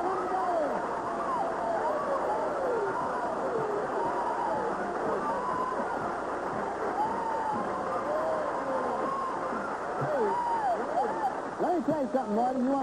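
A young woman shrieks and squeals with joy.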